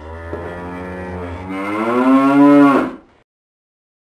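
A mechanical calf lets out a long, loud moo that rises and then cuts off.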